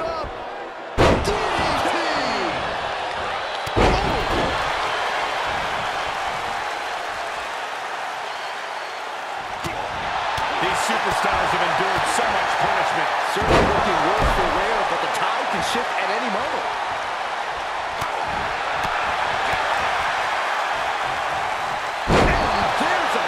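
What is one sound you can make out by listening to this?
Bodies slam hard onto a wrestling mat with loud thuds.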